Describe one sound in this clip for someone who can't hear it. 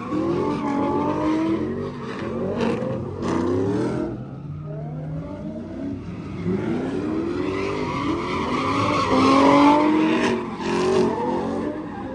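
Tyres squeal on pavement.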